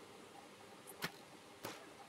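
A bowstring snaps as an arrow is shot.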